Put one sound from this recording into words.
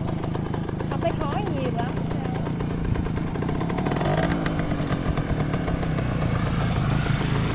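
A motorcycle engine sputters and idles close by.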